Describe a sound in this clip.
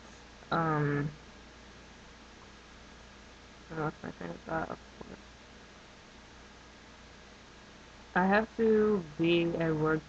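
A young woman speaks close to the microphone in short, slow phrases with pauses.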